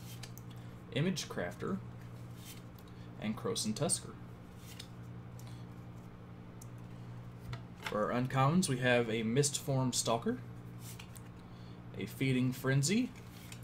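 Playing cards rustle and slide against each other in hands.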